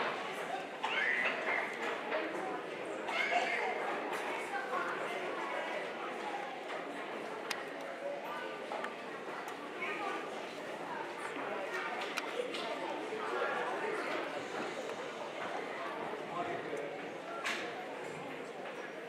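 An audience of children and adults murmurs and chatters in a large echoing hall.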